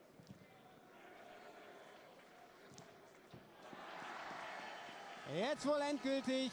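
A stadium crowd cheers and roars in a large open arena.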